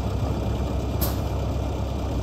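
A truck's hood swings open with a thud.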